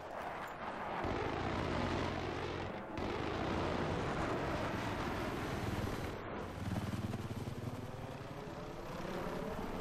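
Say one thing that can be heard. A jet roars low overhead and fades away.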